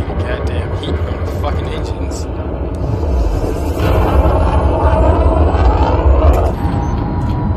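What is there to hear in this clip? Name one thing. A spacecraft's engines roar with a deep, steady rumble.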